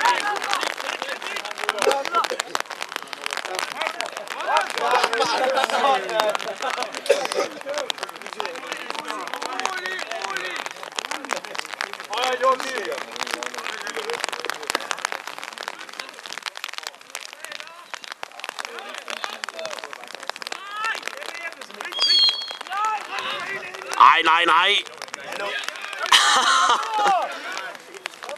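Young men shout and call out across the pitch.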